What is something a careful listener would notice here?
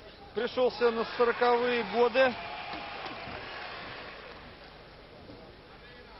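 A crowd cheers in a large hall.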